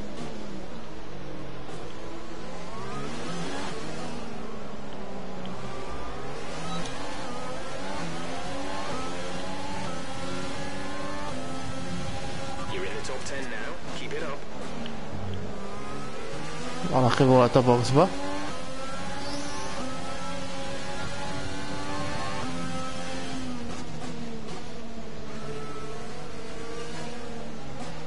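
A racing car engine screams, rising and falling in pitch as it shifts gears.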